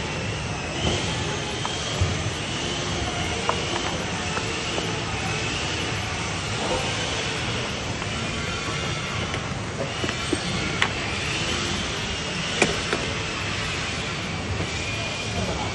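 Corrugated roofing sheets rattle and clatter as they are handled.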